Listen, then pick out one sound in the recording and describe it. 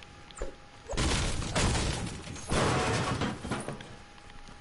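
A pickaxe strikes a hard surface with sharp thuds.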